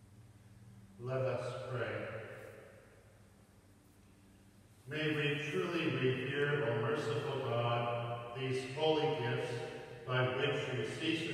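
A man chants in a sung voice, echoing through a large hall.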